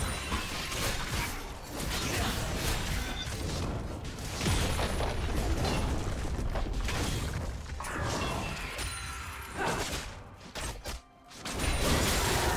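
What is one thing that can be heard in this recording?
Game spells and weapons clash and crackle in a fast fight.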